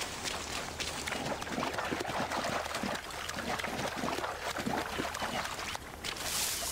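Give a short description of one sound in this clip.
Water splashes as someone wades through it.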